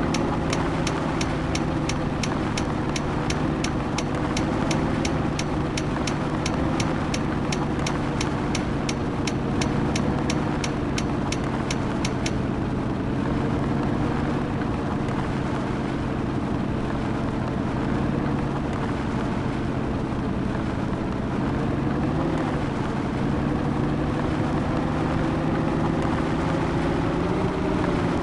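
A truck's diesel engine rumbles steadily.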